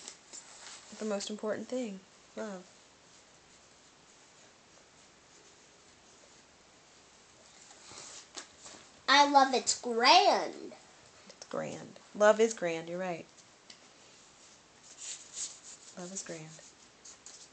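A young girl speaks close by in short bursts.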